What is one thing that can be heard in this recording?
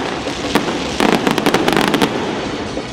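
Fireworks crackle and sizzle.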